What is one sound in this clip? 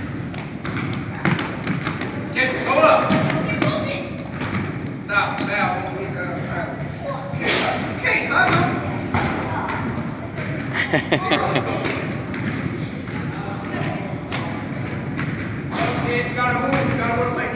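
Boys shout and call out in a large echoing gym.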